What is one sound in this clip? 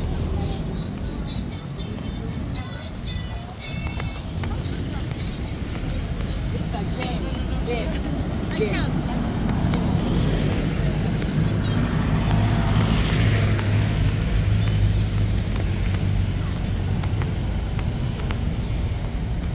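Cars and vans drive past on a road close by.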